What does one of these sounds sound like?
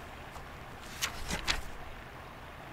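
Paper rustles as a large sheet unfolds.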